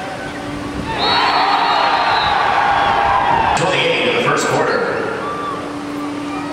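A crowd of spectators cheers.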